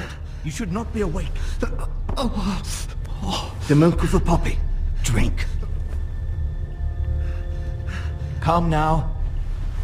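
A man speaks urgently up close.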